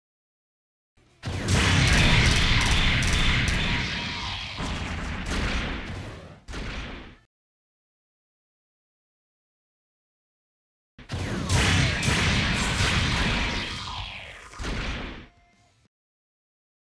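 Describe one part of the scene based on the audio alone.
Robot game characters fire laser beams with crackling blasts and explosions.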